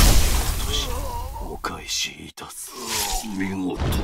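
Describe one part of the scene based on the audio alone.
A blade stabs into flesh with a wet thrust.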